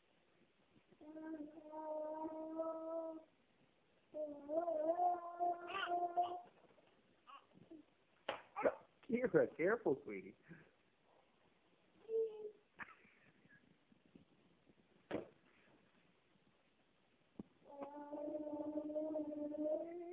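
Two toddlers babble loudly back and forth at close range.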